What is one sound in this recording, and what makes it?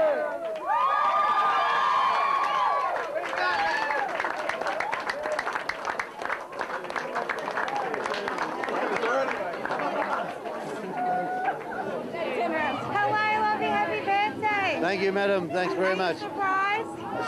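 A crowd of adults chatters and laughs loudly close by.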